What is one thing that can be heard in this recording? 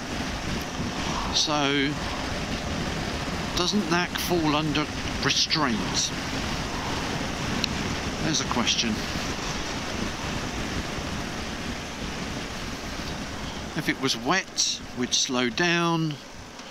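Wind rushes loudly past a moving motorcycle.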